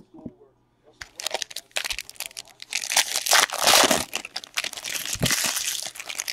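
A plastic wrapper crinkles and tears loudly up close.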